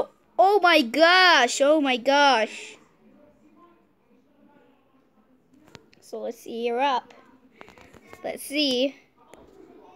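A young girl talks with animation, close to a phone microphone.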